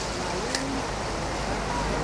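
Water pours into a metal bowl.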